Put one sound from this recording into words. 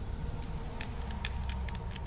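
A combination lock's dials click as they turn.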